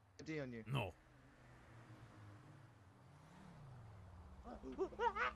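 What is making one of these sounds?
Cars drive past on a road.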